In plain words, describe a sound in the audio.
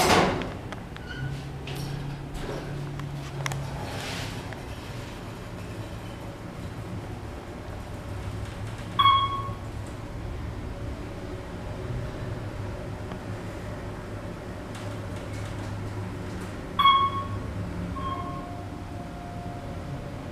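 An elevator hums low and steadily as it moves.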